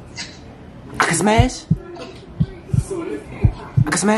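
A girl laughs through a phone call.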